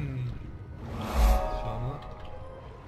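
A magic blast booms and whooshes.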